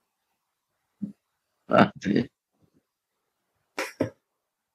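An elderly man speaks slowly and haltingly over an online call, with long pauses.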